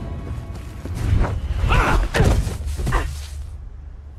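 Heavy blows thud as fighters grapple.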